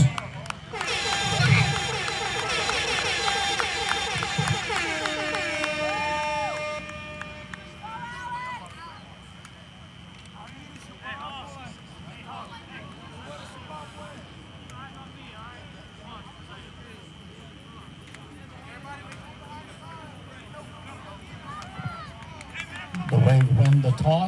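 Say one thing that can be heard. A crowd of people chatters and calls out at a distance outdoors.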